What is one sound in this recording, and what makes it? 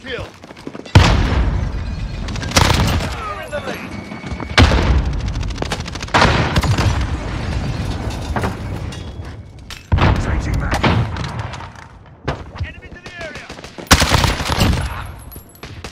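Rapid gunfire cracks out in short bursts.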